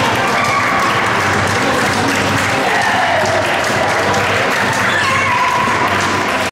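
A crowd of children and adults chatters loudly in a large echoing hall.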